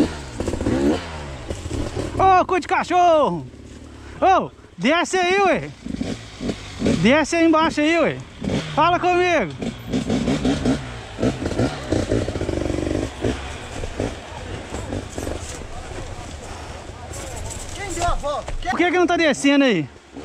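A dirt bike engine rumbles low between the revs.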